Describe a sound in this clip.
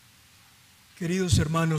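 An older man chants in a steady voice through a microphone, echoing in a large hall.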